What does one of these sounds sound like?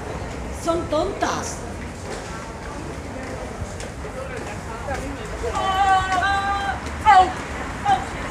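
A middle-aged woman speaks close to the microphone with animation.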